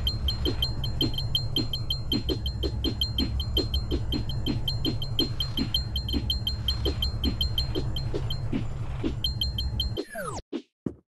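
Rapid bright chimes ring out as coins are collected in a video game.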